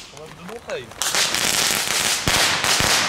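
A firework fountain hisses and sprays loudly.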